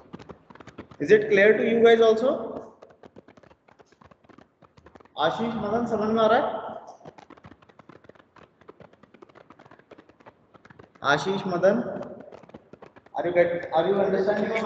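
A man speaks calmly in bursts over an online call.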